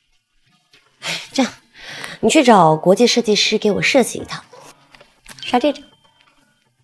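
A young woman speaks with a sulky, expressive tone.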